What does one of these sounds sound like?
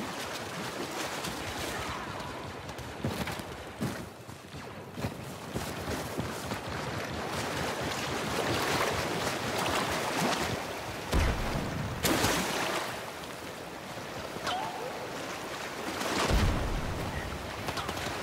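Footsteps crunch through leafy undergrowth.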